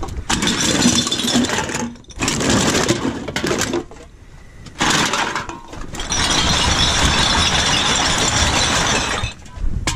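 Empty cans and plastic bottles clatter and rattle.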